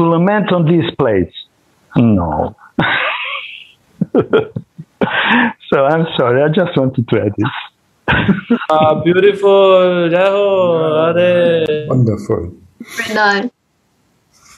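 A man speaks animatedly over an online call.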